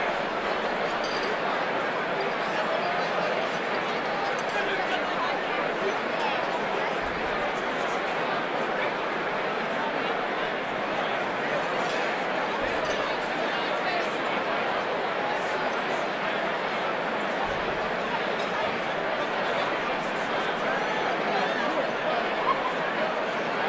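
A large crowd chatters loudly in a big echoing hall.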